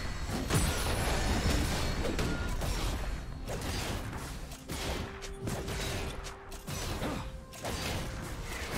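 Magic blasts and weapon hits crackle and burst in a rapid fight.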